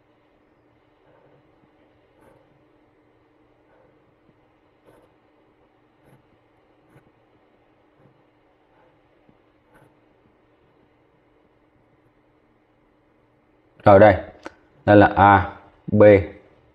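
A pen scratches softly on paper as lines are drawn.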